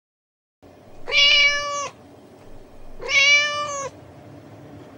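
A cat meows twice.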